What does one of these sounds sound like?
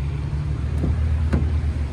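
Light rain patters outdoors.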